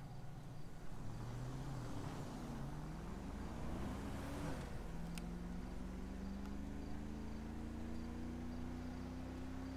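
A car engine revs and speeds up as the car drives off.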